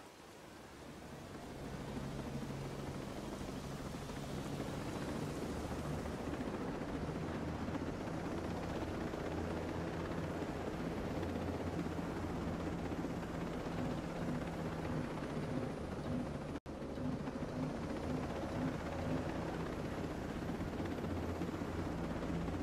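A helicopter's rotor thumps steadily, growing louder as it lifts off.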